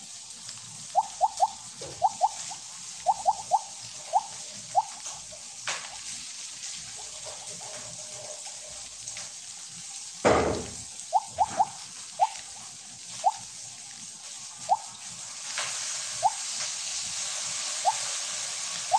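Short bright game chimes blip again and again.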